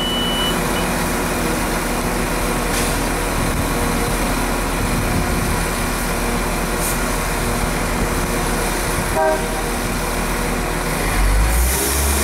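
A diesel multiple unit train idles at a platform.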